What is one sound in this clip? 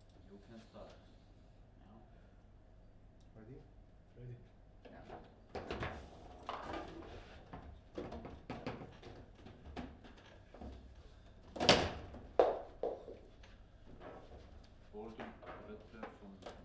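A plastic table football ball is struck and cracks against the table walls.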